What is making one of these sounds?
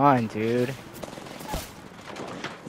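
Gunshots fire in quick bursts nearby.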